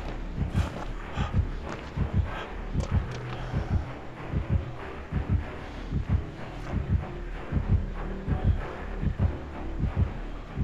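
A heart beats loudly in low, heavy double thumps.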